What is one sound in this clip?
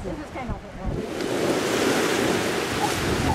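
Gentle surf washes onto a beach.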